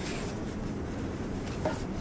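A knife cuts through dough.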